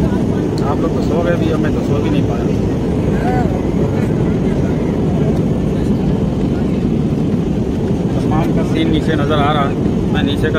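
A steady low engine roar drones throughout.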